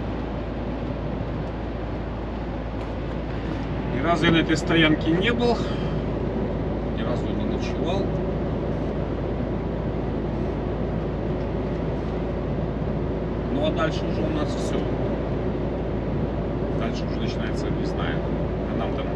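A vehicle's engine and tyres rumble steadily on a road.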